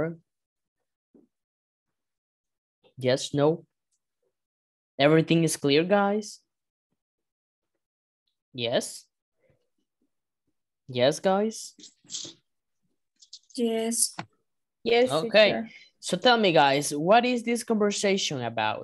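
A woman speaks through an online call, reading out in short phrases with pauses.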